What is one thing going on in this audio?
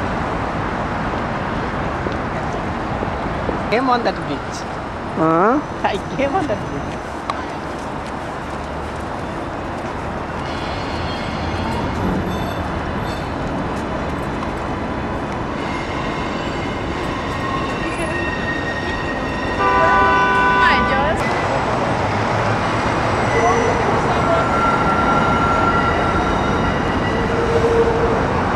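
Traffic rumbles steadily on a busy city street outdoors.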